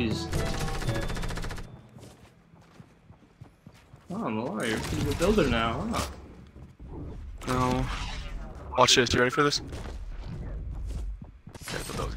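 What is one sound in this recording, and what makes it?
Footsteps thud quickly across wooden platforms in a game.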